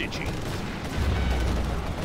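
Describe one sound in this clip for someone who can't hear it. Laser beams fire with a sharp zap.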